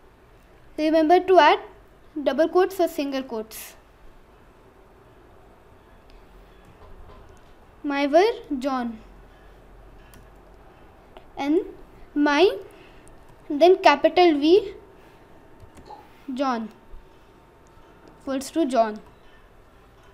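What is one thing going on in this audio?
A boy speaks calmly and close to a microphone, in short phrases with pauses.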